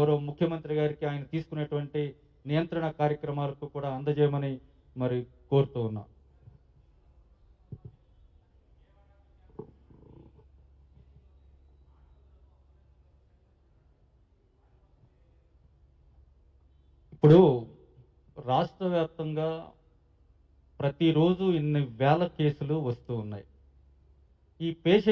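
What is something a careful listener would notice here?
A man speaks calmly into a microphone, with pauses.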